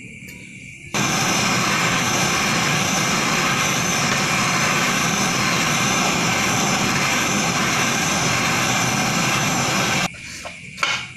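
A gas torch roars with a steady hissing flame.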